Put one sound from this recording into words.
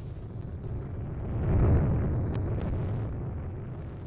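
A vehicle crashes with a loud rumbling impact.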